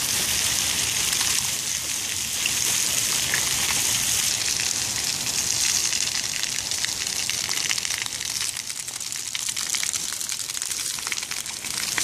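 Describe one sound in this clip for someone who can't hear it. Jets of water spray and splash onto wet pavement outdoors.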